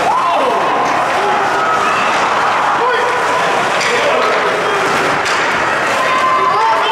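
A crowd of spectators and players shouts and calls out throughout.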